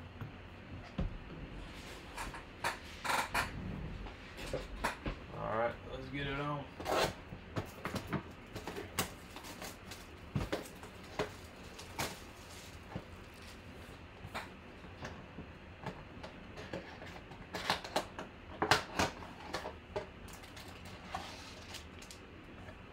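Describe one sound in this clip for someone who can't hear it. A cardboard box taps and scrapes on a tabletop.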